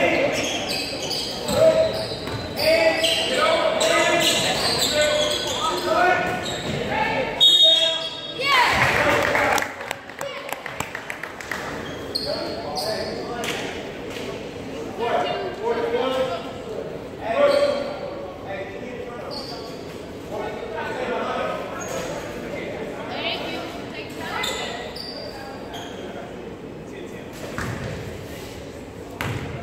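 Basketball shoes squeak on a wooden court in a large echoing gym.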